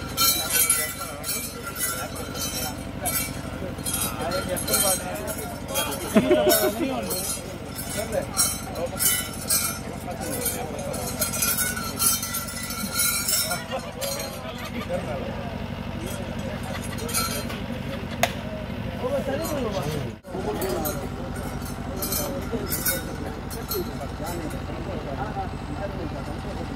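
A crowd of men and women talk and murmur nearby.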